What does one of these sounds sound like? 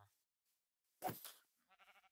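A creature hisses close by.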